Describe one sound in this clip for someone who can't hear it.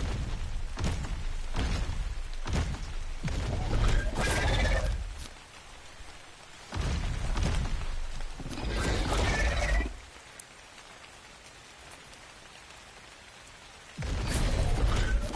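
Heavy footsteps thud as a large beast walks over rocky ground.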